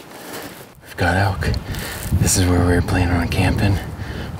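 A man talks calmly close to the microphone outdoors.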